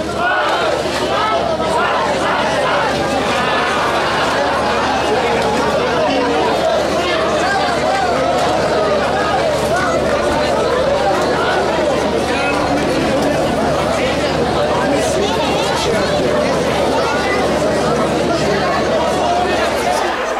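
A crowd of men and women chatter and talk over one another.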